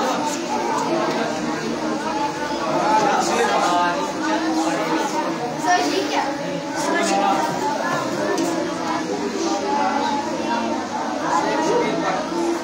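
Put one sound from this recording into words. Several men recite aloud at once in a room with some echo.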